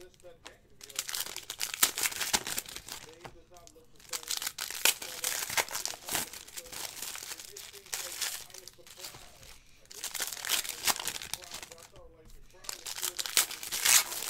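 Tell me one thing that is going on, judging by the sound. Foil card packs crinkle and tear in someone's hands.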